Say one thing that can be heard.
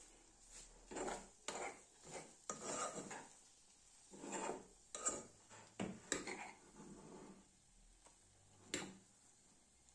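A metal spoon scrapes and knocks inside a pot.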